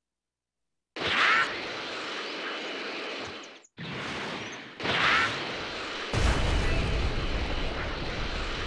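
A burst of energy blasts with a roar.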